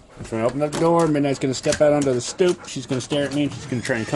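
A door handle rattles and a door creaks open.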